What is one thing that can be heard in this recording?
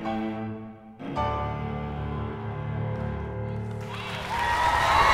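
A cello plays slow sustained notes in a large hall.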